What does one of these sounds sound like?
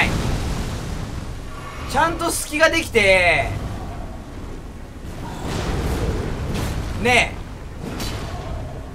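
A heavy weapon swings and strikes with dull impacts.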